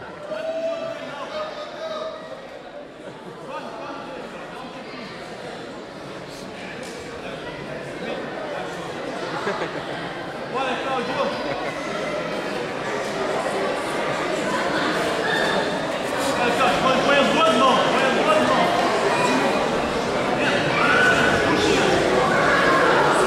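A crowd of men and women shout and cheer, echoing in a large hall, growing louder.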